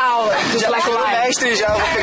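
A young man laughs loudly outdoors.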